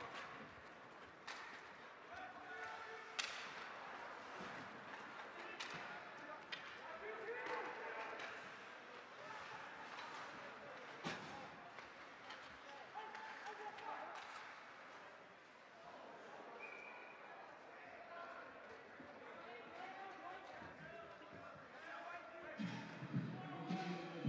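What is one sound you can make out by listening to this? A crowd murmurs and cheers in an echoing rink.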